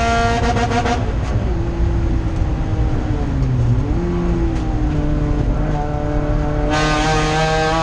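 A race car engine drops to a low burble while braking into a corner.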